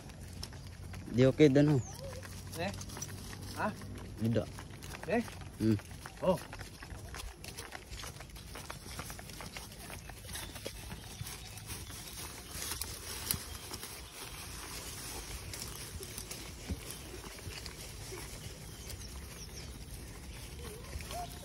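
Horses' hooves thud softly on grass.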